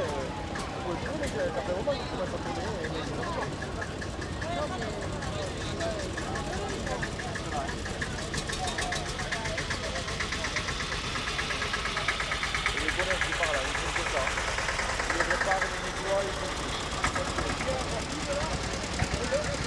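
A crowd of onlookers chatters outdoors.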